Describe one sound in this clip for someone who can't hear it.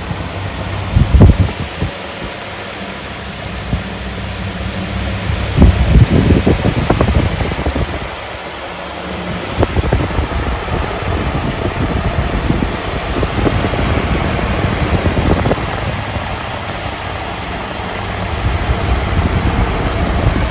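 Wind from a fan buffets close by with rumbling gusts.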